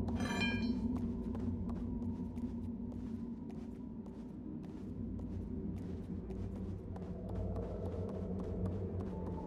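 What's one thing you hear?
Small footsteps patter on creaking wooden floorboards.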